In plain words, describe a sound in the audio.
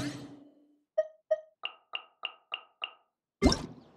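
Short soft chimes tick in quick succession.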